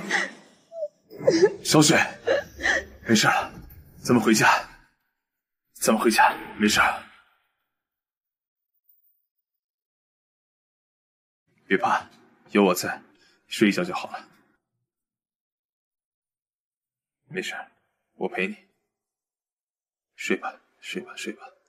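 A young man speaks close by, softly and gently.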